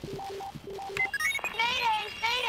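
Electronic keys chirp and beep as they are pressed on a device.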